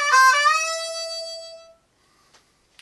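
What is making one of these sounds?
A man blows a long, bright note that slowly fades.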